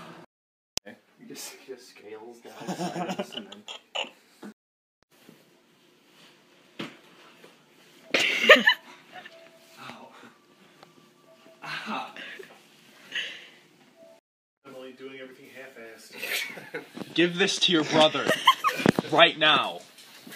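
A young man talks and laughs with animation, close by.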